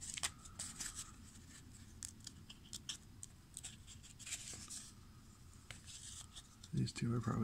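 Stiff trading cards rustle and flick against one another as a hand shuffles them.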